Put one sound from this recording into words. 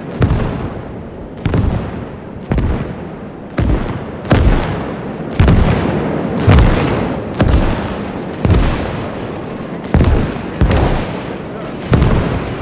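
Heavy explosions boom one after another, each rumbling away.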